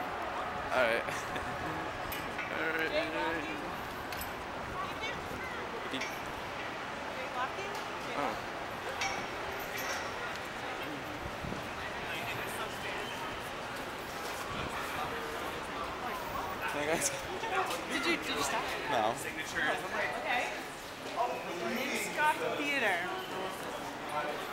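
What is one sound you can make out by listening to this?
Footsteps walk on pavement.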